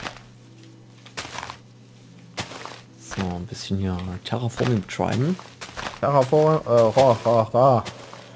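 A shovel digs into soil with soft crunches.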